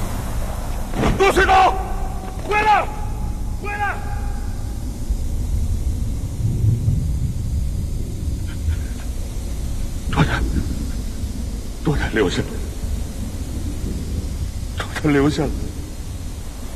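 A man cries out desperately, close by.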